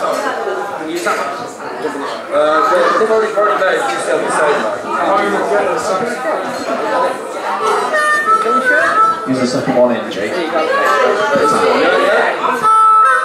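A man sings into a microphone on a live stage.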